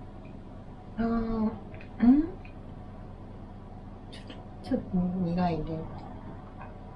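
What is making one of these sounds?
A young woman speaks softly and close up.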